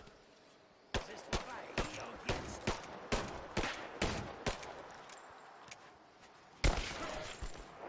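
A pistol fires in quick, sharp shots.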